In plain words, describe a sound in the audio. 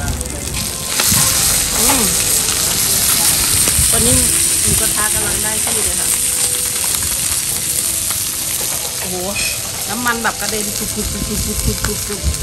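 A hot pot of broth bubbles and sizzles.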